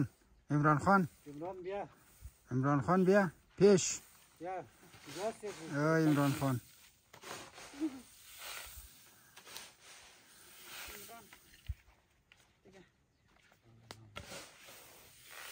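A broom sweeps across grain on a tarp.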